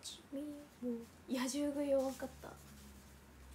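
A young woman speaks briefly and animatedly, close to a microphone.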